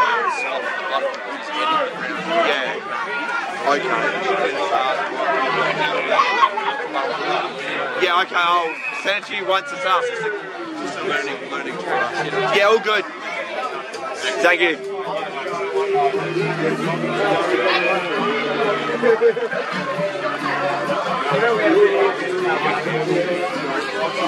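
A crowd of spectators chatters and calls out nearby, outdoors.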